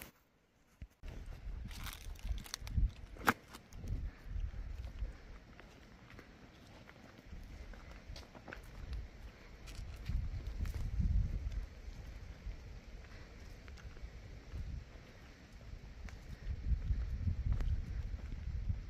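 Footsteps crunch on loose stones and gravel.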